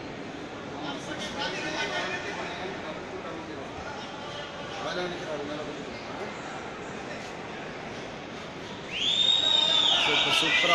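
A large crowd chatters and murmurs in a big echoing hall.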